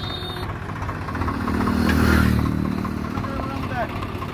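A motorcycle passes by.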